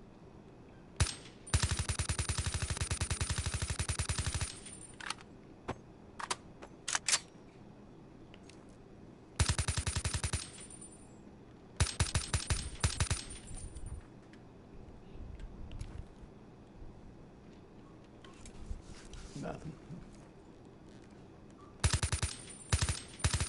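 A rifle fires rapid automatic bursts.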